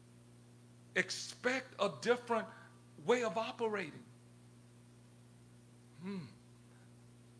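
A man speaks with feeling into a microphone, heard through a loudspeaker.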